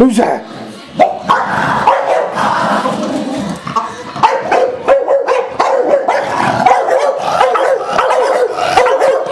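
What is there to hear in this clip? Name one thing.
Two dogs scuffle and tussle close by.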